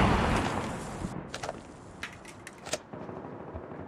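A rifle's metal parts click and clack as it is handled.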